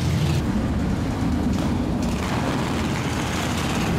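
A motorcycle engine revs and roars close by.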